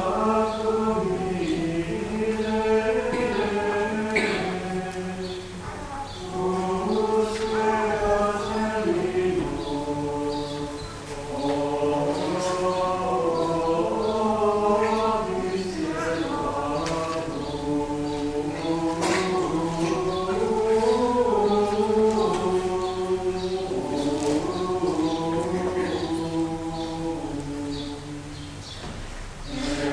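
Men chant together slowly in a large echoing hall.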